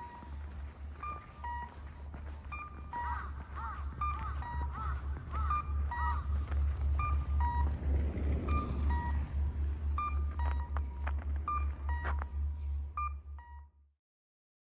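A pedestrian crossing signal beeps over and over.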